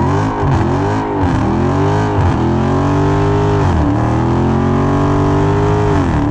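Tyres squeal as they spin on asphalt.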